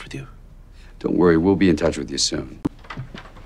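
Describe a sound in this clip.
A man answers calmly and reassuringly.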